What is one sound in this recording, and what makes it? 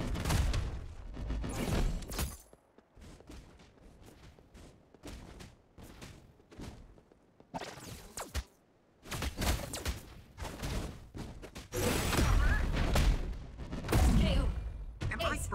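Video game sound effects of blasts and impacts from a battle play.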